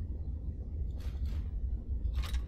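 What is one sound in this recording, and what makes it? A bow is taken from a chest with a short rustling clatter.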